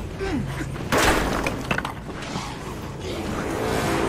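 Blows land in a short scuffle.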